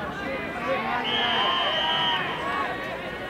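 A referee's whistle blows one long, steady blast.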